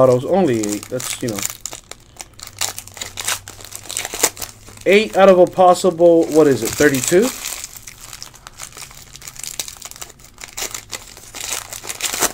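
A foil card pack crinkles and rustles close by.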